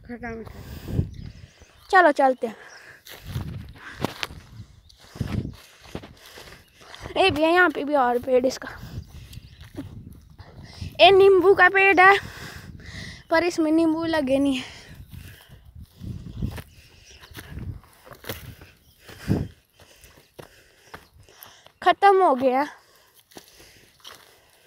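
Footsteps crunch and rustle through dry grass and brush.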